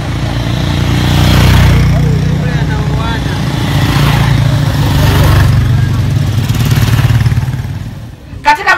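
Motorcycle engines rumble past on a road.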